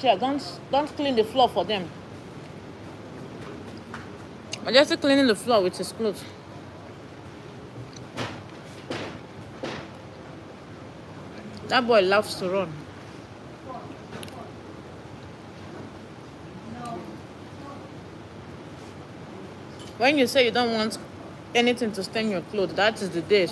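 A young woman talks close by, calmly and with expression.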